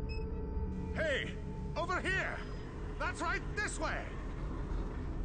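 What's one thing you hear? A man calls out loudly from a distance.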